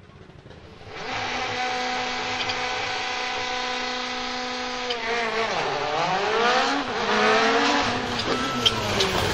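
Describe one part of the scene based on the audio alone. A second rally car approaches with its engine revving and roaring.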